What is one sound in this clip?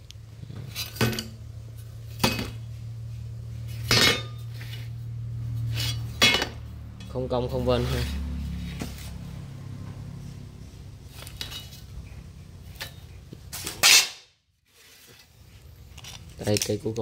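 A metal blade clinks and knocks as it is handled.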